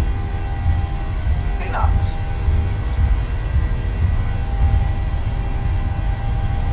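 Aircraft wheels rumble along a runway.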